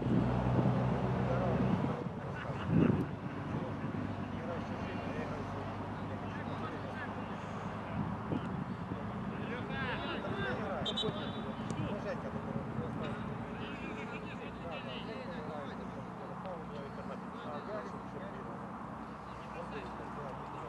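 Football players shout and call to each other in the distance outdoors.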